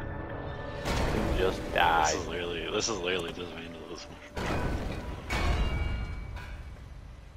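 Heavy stone crashes and crumbles with a deep rumble.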